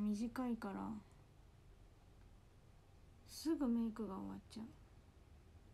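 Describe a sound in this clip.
A young woman speaks close by in short bursts.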